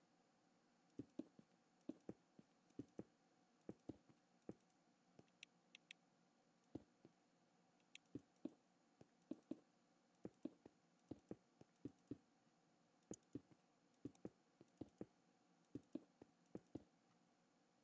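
Stone blocks are placed one after another with short, dull knocks.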